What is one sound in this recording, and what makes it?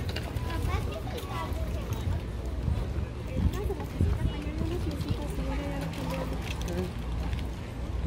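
Young adults talk briefly close by.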